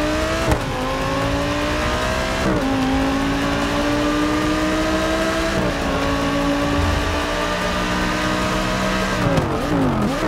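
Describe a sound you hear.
A racing car engine roars loudly, rising in pitch with each gear and dropping at each shift.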